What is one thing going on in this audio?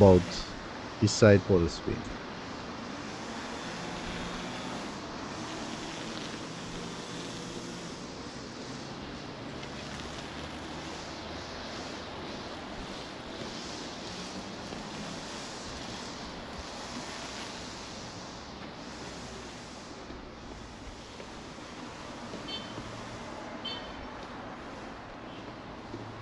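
A steady outdoor town hum fills the air.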